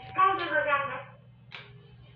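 An elevator plays a short electronic tone through a small loudspeaker.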